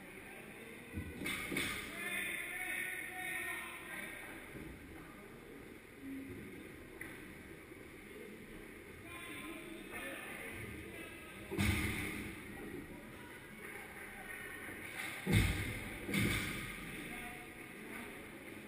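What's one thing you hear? Skate blades scrape across ice close by, in a large echoing rink.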